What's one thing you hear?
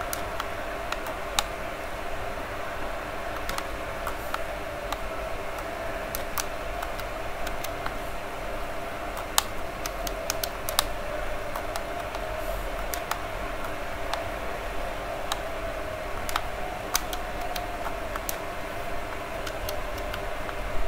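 Short electronic menu clicks sound now and then as selections change.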